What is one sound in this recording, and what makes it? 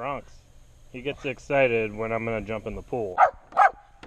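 A small dog whines and yelps in a high voice.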